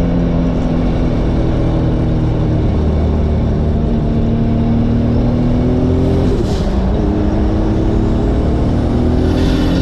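A car engine hums and revs up and down, heard from inside the car.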